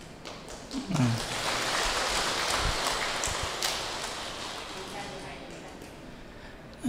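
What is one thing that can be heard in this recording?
An audience claps and laughs together.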